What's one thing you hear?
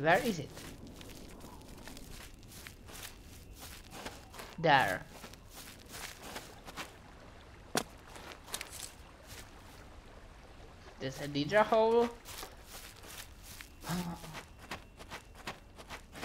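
Footsteps tread over grass and dirt.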